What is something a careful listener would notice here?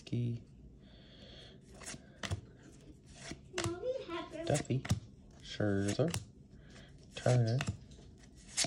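Trading cards slide and flick against each other as they are flicked off a stack.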